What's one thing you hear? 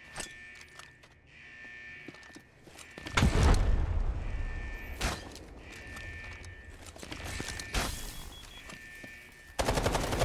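Metal gear clicks and rattles as a weapon is swapped.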